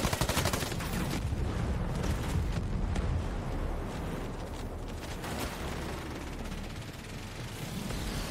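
Footsteps run over hard ground.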